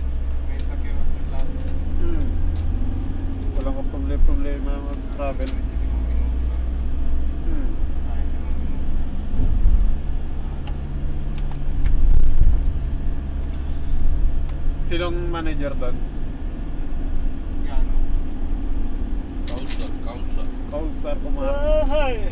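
A vehicle's engine rumbles steadily from inside.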